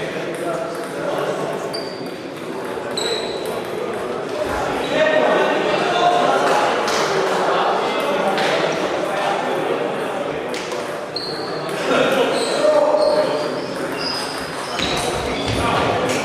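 Ping-pong balls click against paddles and tables, echoing in a large hall.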